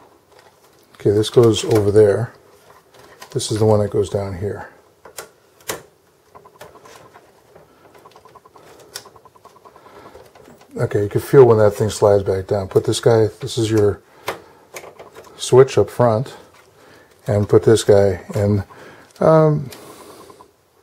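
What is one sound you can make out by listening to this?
Small plastic connectors click and rattle as cables are handled.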